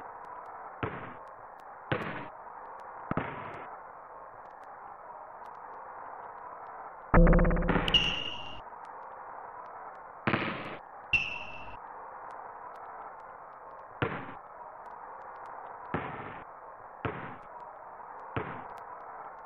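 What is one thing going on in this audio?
A basketball bounces on a hardwood court in a 16-bit video game.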